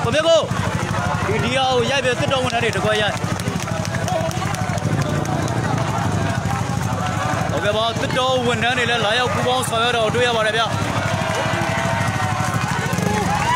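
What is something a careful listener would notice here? A crowd of people shout and chatter outdoors.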